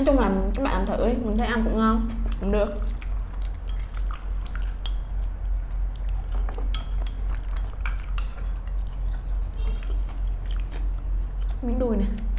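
Two young women chew and slurp food close by.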